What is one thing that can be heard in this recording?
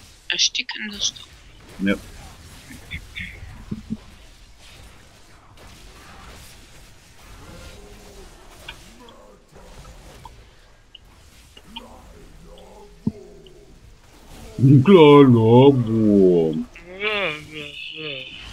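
Magic spells crackle and whoosh in a video game battle.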